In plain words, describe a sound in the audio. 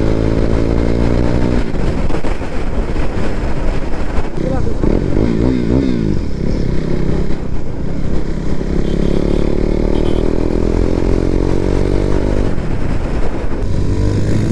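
A motorcycle engine roars close by, revving up and dropping as gears shift.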